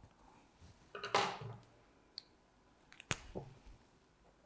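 A pencil clicks down onto a wooden table.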